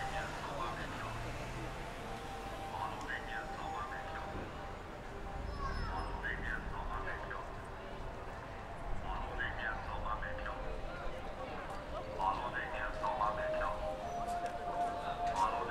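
Car traffic rolls past along a busy street.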